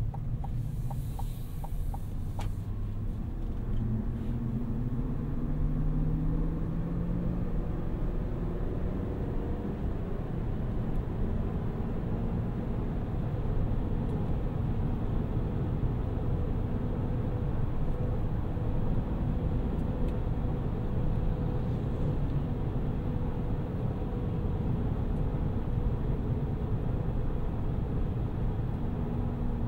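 A car engine hums and rises in pitch as the car speeds up.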